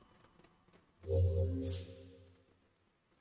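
A game menu chimes as a message pops up.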